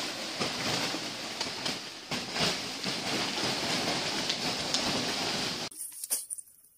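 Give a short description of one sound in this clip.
A brush scrapes across plastic sheeting.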